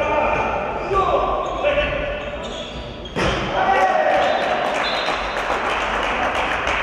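Sports shoes squeak on a hard court.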